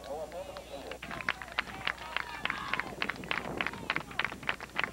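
A group of players claps in rhythm.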